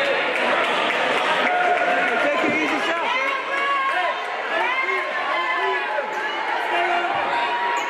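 Many voices chatter and call out in a large echoing gym.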